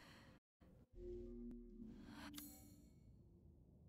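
A soft menu chime rings out.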